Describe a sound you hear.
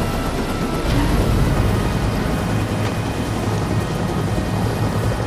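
A helicopter engine rumbles low and steady.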